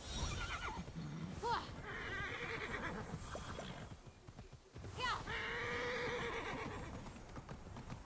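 A horse gallops over the ground.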